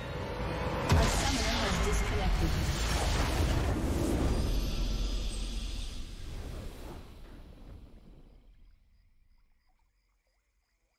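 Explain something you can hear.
A triumphant fanfare swells and then slowly fades away.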